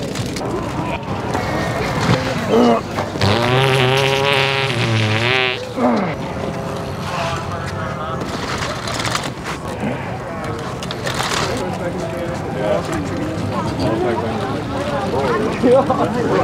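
People chatter in a crowd outdoors.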